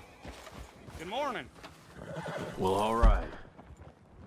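A horse whinnies loudly nearby.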